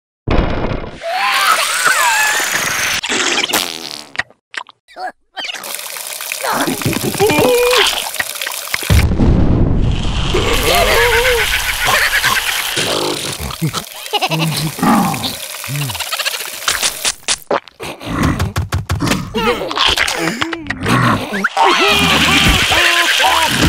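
A squeaky cartoon creature voice shrieks and gasps up close.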